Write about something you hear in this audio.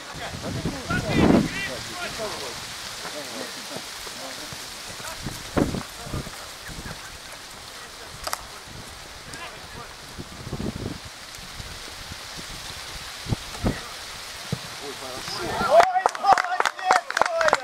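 Young men shout across an outdoor pitch.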